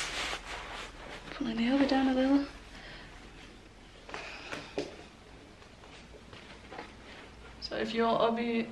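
Cloth rustles and swishes as a sash is tied.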